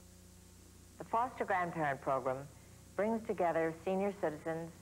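A woman speaks calmly and clearly to the listener.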